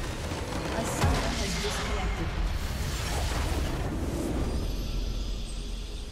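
A structure explodes with a loud rumbling blast.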